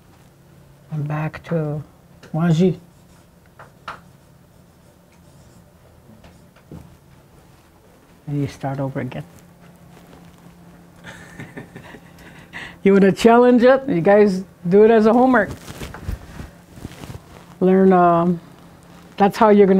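An elderly woman speaks slowly and clearly in short phrases, close by.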